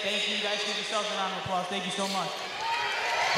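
A young man speaks through a microphone, echoing in a large hall.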